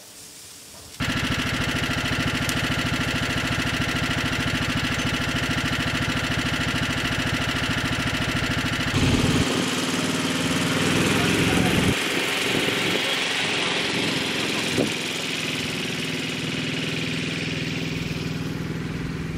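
A small utility vehicle's engine runs steadily, then drives off and fades into the distance.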